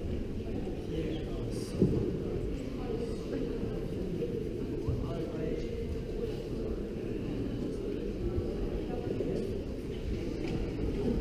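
A man speaks through a loudspeaker far off, echoing in a large hall.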